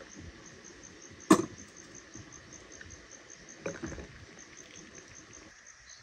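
Tea trickles from a tap into a glass.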